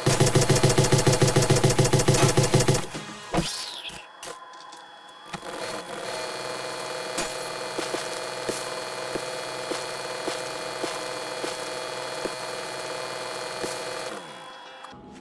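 A motorised drill grinds loudly into rock and earth.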